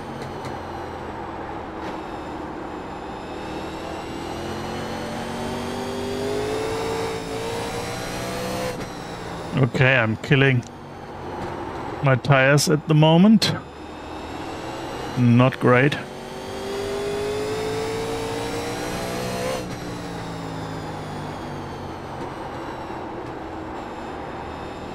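A race car engine drones steadily, its pitch rising and falling with the gears.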